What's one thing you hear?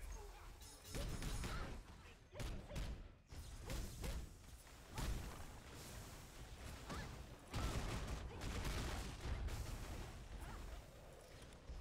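Explosions and hit impacts burst repeatedly in a game.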